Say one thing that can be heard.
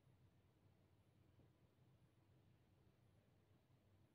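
A chess piece is set down on a wooden board.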